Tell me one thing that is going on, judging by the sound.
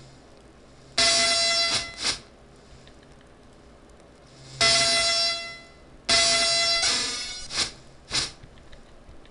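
Short bursts of synthesized sound effects from an old DOS computer game play.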